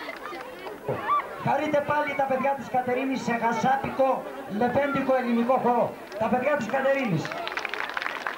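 A man sings loudly through a loudspeaker.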